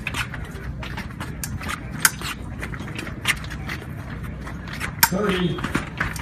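Fencing blades clash and clink sharply.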